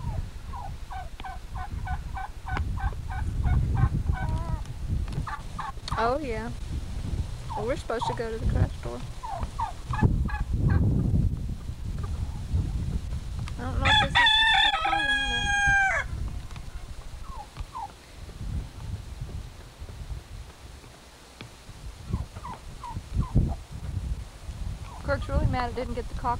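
Hens cluck and chatter close by.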